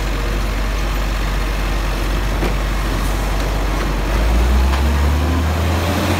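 A truck's mechanical arm whirs and clanks as it lifts a bin.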